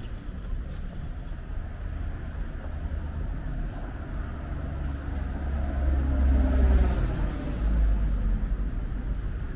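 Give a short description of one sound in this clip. Outdoors, a steady low rumble of city traffic and wind goes on.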